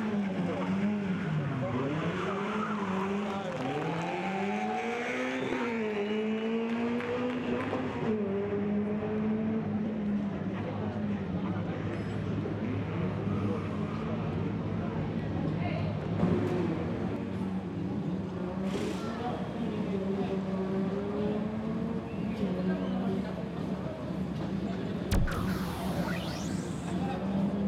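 A rally car engine revs hard and rises and falls in pitch as the car races by.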